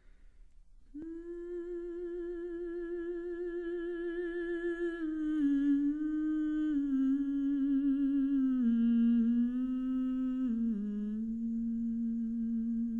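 A woman sings long, wavering held notes that slowly step lower.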